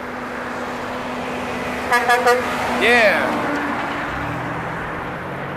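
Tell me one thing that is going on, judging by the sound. A heavy truck rumbles close by as it passes.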